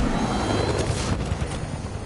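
A helicopter rotor whirs loudly.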